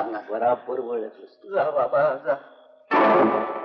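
An elderly man speaks sternly to a younger man.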